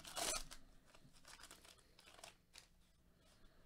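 Trading cards slide and shuffle against each other.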